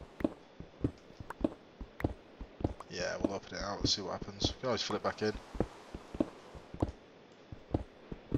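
A pickaxe chips at stone with quick, repeated knocks.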